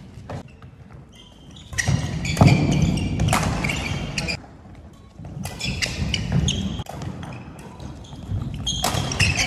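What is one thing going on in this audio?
Badminton rackets strike a shuttlecock with light smacks.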